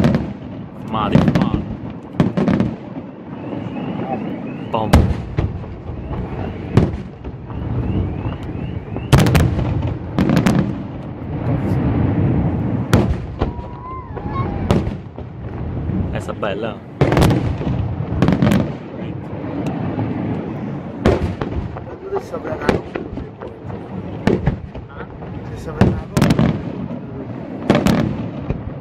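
Fireworks crackle and sizzle as sparks fall.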